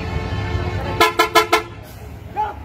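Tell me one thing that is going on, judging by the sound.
A bus horn honks several times in quick short blasts.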